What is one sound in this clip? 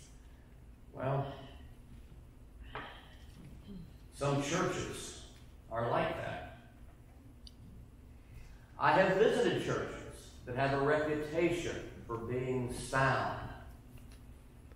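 An elderly man speaks calmly in a room with a slight echo.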